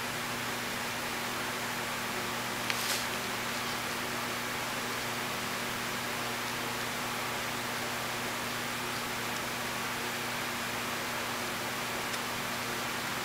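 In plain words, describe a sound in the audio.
A small paintbrush dabs softly on paper.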